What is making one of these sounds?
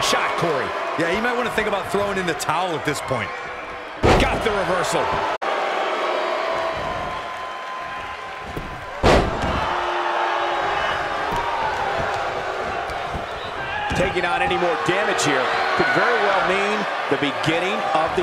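A crowd cheers and murmurs throughout.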